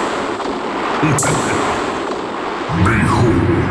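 Loud electronic music with deep bass booms from big loudspeakers.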